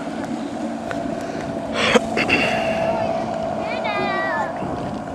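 A motorboat engine drones steadily across open water.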